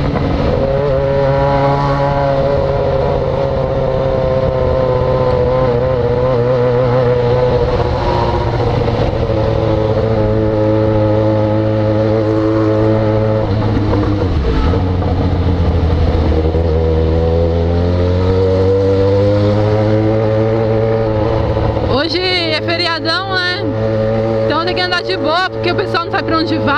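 A motorcycle engine hums close by, rising and falling in pitch as it speeds up and slows down.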